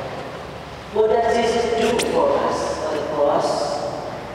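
A young boy talks nearby in an echoing hall.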